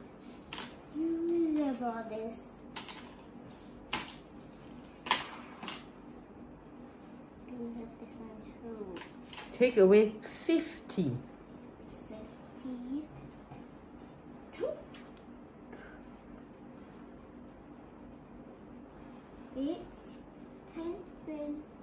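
A young girl speaks softly and playfully close by.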